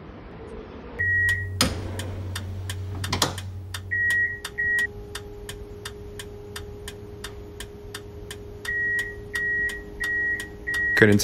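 A tram's electric motor hums steadily.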